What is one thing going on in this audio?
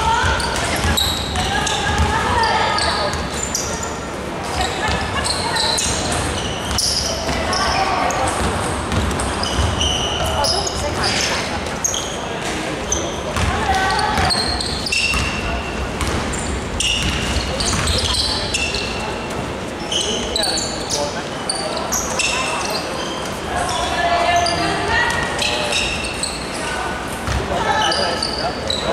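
A basketball bounces on the court with dull thuds.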